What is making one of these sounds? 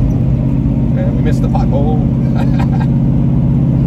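A young man talks close by inside a car.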